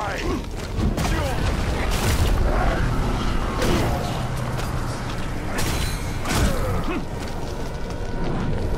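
Fire bursts with loud whooshing roars.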